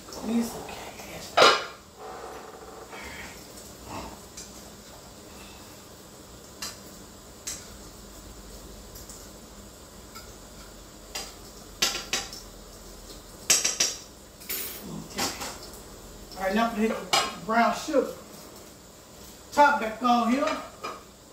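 Utensils clink and knock against a pan.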